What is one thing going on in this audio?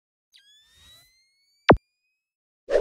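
A coin is flicked and rings in the air.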